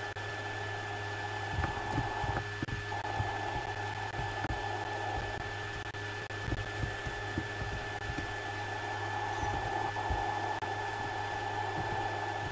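A snowboard hisses as it slides over snow.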